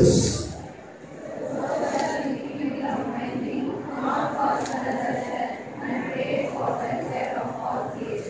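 A large group of young women recite together in unison.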